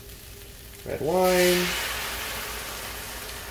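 Spices land in a hot pan with a sudden louder sizzle.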